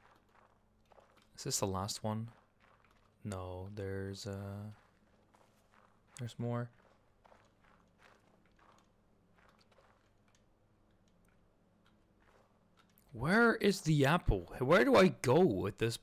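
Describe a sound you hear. Footsteps pad softly on grass and dirt.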